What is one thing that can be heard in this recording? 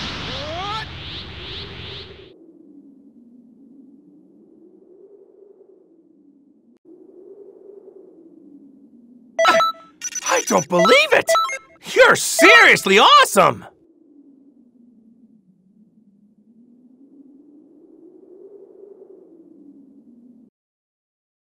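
Soft game music plays.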